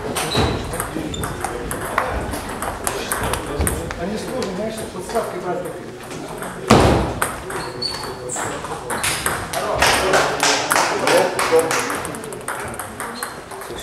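A ping-pong ball clicks sharply back and forth in a quick rally.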